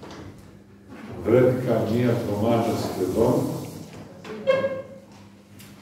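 An elderly man speaks slowly and solemnly into a microphone in an echoing hall.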